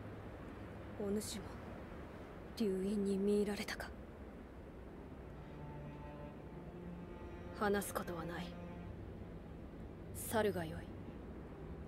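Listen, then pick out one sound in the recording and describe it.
A young woman speaks quietly and calmly.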